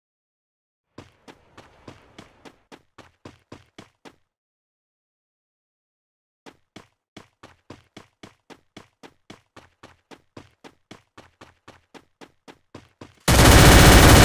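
Footsteps run quickly over grass.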